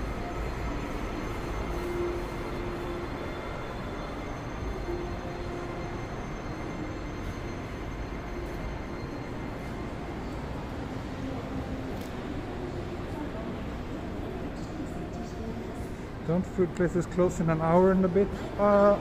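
Passers-by walk far off under an echoing roof.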